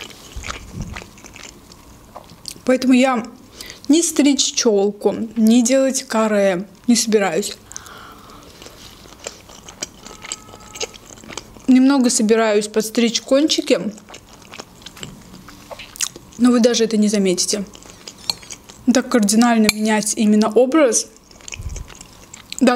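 A fork clinks against a glass bowl.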